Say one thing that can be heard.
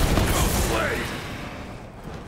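A gun fires rapid shots with bursts of energy crackling.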